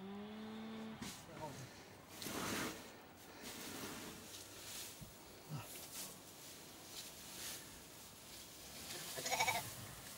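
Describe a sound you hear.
Dry hay rustles as it is handled.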